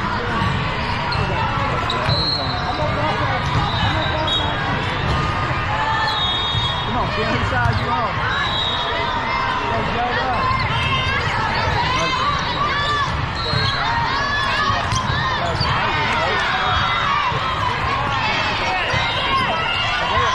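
A large echoing hall is filled with the chatter of a crowd.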